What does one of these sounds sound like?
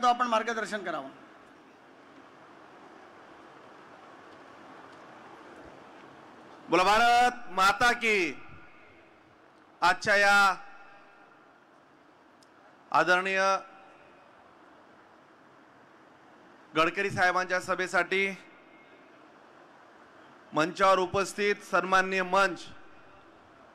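A man speaks forcefully in short bursts through a microphone and loudspeakers, echoing in a large space.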